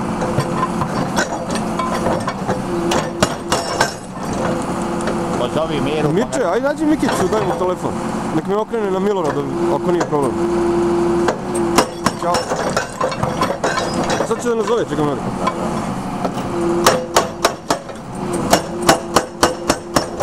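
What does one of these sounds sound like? A hydraulic breaker hammers rapidly against rock.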